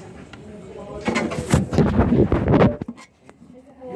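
A hand rubs and bumps against the microphone.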